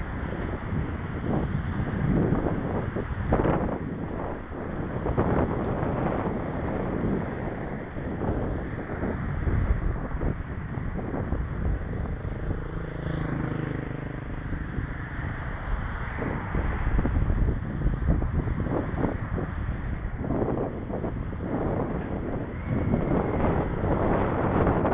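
Bicycle tyres rumble over rough pavement.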